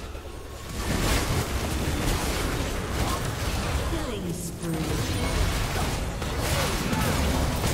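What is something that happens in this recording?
Magic spells crackle and burst in a busy fight.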